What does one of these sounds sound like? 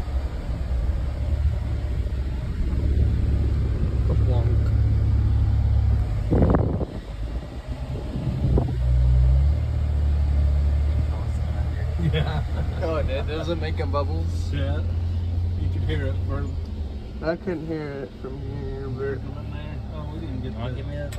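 A vehicle engine rumbles low and steady inside a car.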